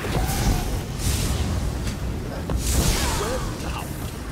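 Magic blasts crackle and burst in a fight.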